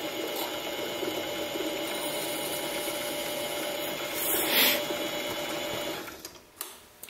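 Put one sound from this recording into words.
A lathe spindle whirs with a steady hum.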